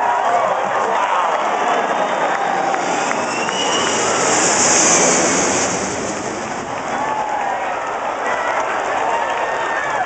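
A crowd cheers and shouts nearby outdoors.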